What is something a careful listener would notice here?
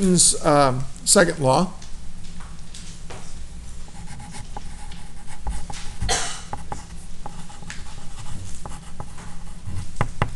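A marker squeaks as it writes on paper.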